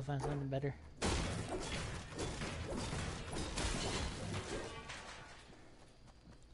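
A pickaxe strikes a wall again and again.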